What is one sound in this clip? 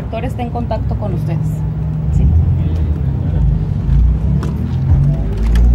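A crowd of men talk over one another nearby.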